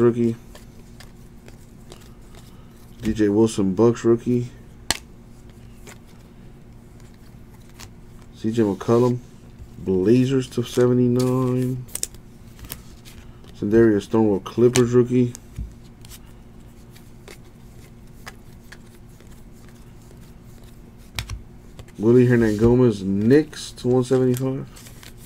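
Trading cards shuffle and slide against each other between fingers.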